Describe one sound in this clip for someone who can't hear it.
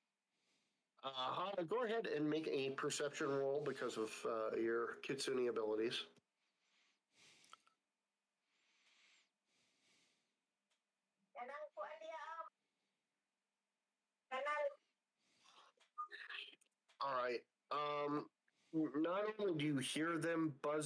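A man talks calmly and close into a microphone, in bursts with pauses.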